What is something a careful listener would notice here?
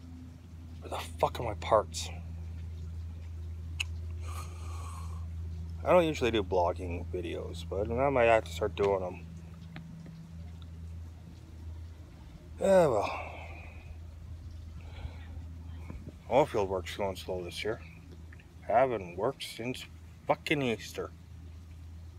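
A young man talks casually, close to the microphone, in short bursts.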